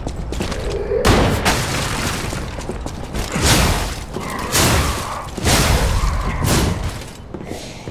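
A blade swishes and clashes in heavy blows.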